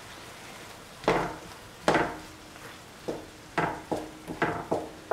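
A spatula stirs and scrapes vegetables in a pan.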